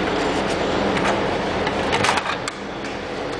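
Metal clicks and clanks as a machine lever is moved.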